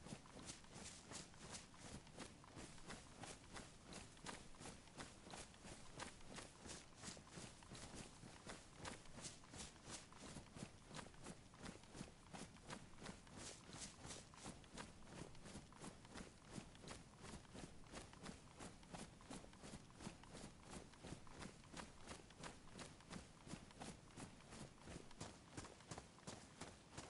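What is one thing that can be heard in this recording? Footsteps crunch steadily through dry grass.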